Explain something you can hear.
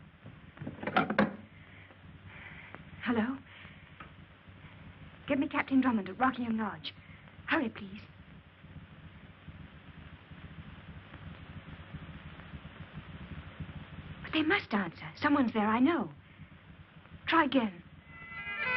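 A young woman speaks into a telephone in short, tense bursts.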